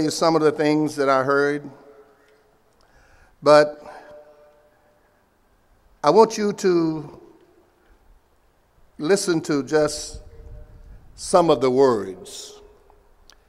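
An elderly man speaks slowly and deliberately through a microphone, with a slight echo, pausing between phrases.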